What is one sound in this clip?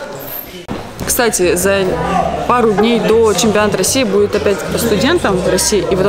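A young woman speaks calmly and close by in a large echoing hall.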